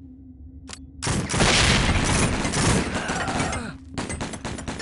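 A loud explosion bursts close by and rumbles.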